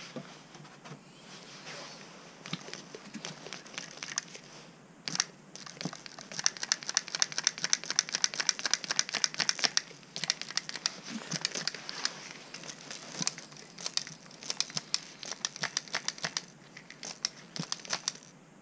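Gloved fingers rub and crinkle against plastic up close.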